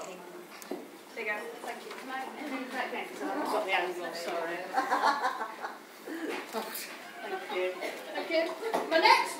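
Women talk and laugh close by.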